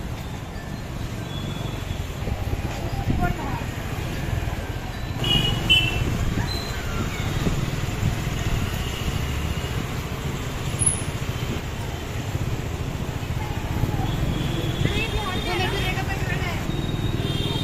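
A crowd of people chatter in the background outdoors.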